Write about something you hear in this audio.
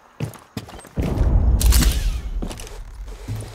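A smoke grenade bursts with a loud, low whoosh and hisses.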